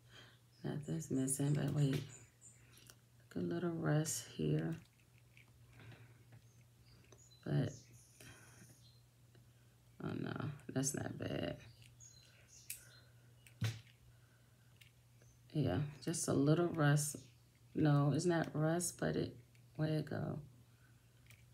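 A metal bracelet clicks and rattles softly as it is handled.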